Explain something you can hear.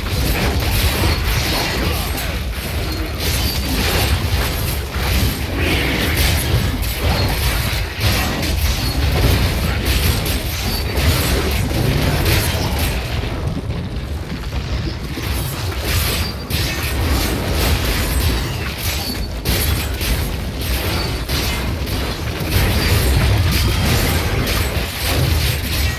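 Spells crackle and blast over and over in a game fight.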